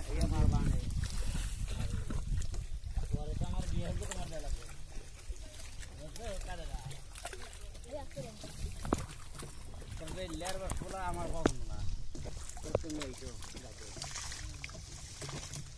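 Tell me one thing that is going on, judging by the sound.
Water splashes gently.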